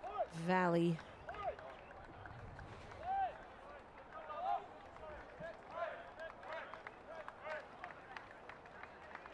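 Men shout and cheer in the distance.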